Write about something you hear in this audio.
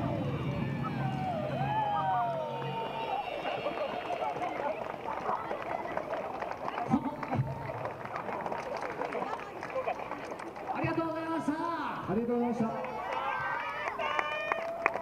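A group of young women shout in chorus outdoors.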